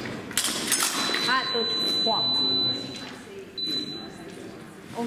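An electric fencing scoring box beeps.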